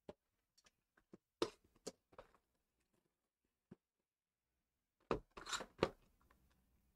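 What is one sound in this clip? Plastic wrapping crinkles as a card box is handled.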